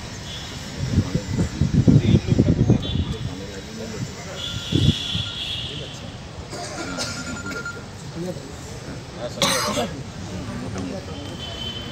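Several men talk nearby outdoors.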